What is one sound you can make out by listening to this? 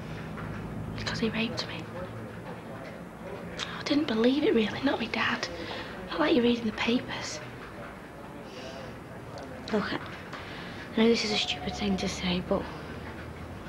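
A young woman speaks quietly and hesitantly nearby.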